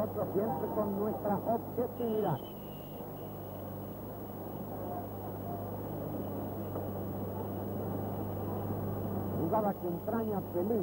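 A stadium crowd roars and murmurs steadily.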